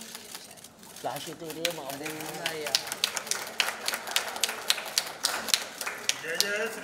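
A small crowd claps.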